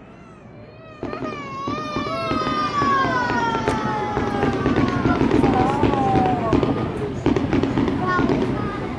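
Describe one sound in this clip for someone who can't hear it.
Fireworks rockets whistle as they shoot up.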